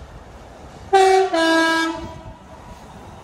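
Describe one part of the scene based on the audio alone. A train horn sounds two loud tones.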